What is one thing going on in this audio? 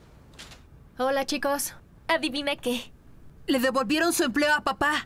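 A girl speaks cheerfully nearby.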